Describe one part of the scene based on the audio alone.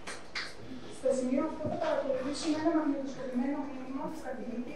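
A young woman speaks calmly through a microphone in an echoing hall.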